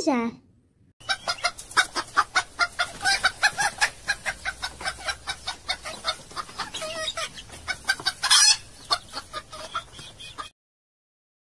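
Hens cluck and squawk rapidly.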